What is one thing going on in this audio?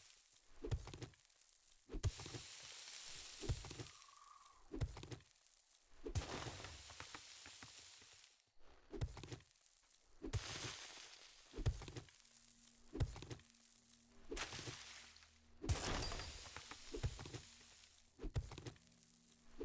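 A pickaxe strikes earth and rock in heavy, regular thuds.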